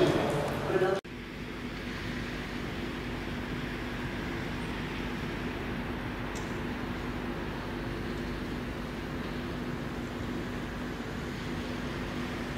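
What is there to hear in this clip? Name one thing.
Rain patters steadily on wet pavement and puddles.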